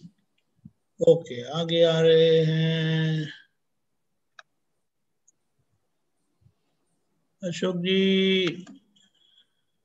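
A middle-aged man chants in long, drawn-out tones over an online call, pausing between phrases.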